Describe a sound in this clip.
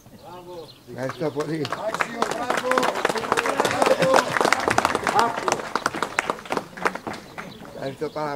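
A crowd applauds loudly outdoors.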